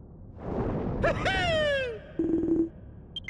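A deep monstrous voice lets out a falling roar.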